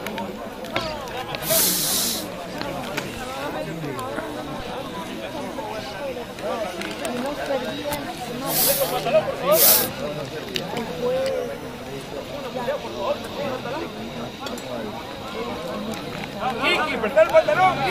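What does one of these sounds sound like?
Young men shout and call to each other across an open field.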